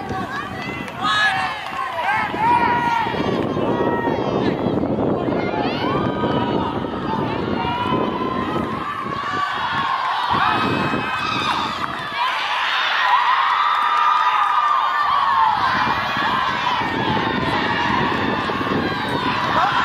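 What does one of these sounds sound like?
A soccer ball is kicked with a dull thump.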